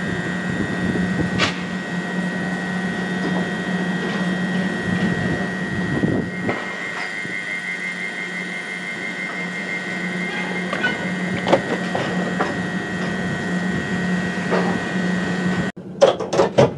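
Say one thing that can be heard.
A standing train hums steadily.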